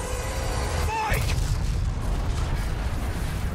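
A large explosion booms and roars with fire.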